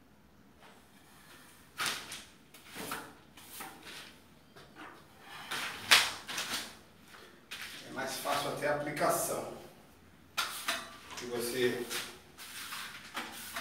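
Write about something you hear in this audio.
A trowel scrapes across a plastered wall.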